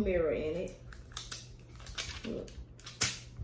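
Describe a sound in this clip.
Plastic packaging crinkles and clicks.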